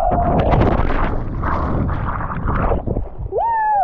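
Water splashes and churns around a swimmer.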